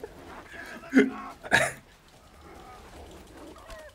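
A dog snarls and growls while attacking.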